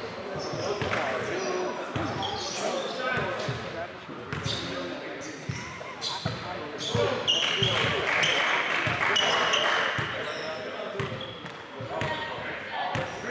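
Voices of young men chatter in a large echoing gym.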